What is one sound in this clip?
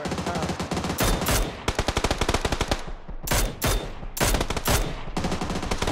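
Rifle shots crack loudly, several times.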